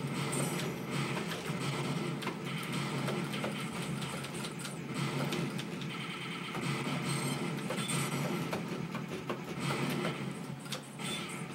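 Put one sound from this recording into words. An arcade shooting game fires rapid gunshots and explosions through its loudspeaker.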